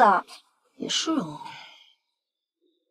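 A young woman speaks calmly, close by.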